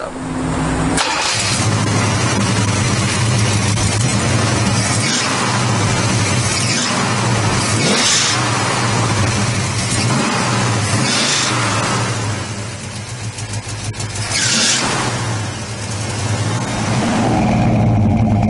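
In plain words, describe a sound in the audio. A car engine idles with a deep, lumpy rumble and revs up now and then.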